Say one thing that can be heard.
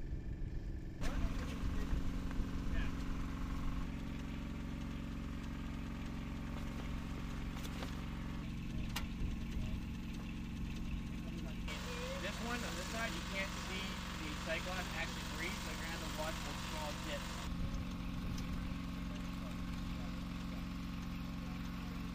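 A motor pump runs with a steady, low hum.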